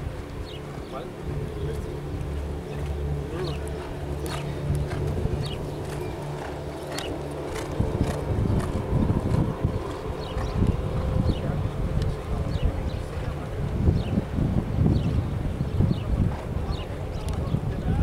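Hooves thud on grass as a horse canters.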